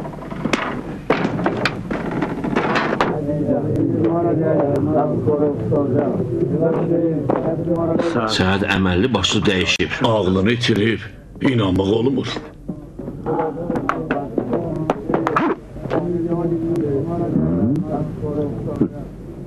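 A man speaks in a raised, dramatic voice.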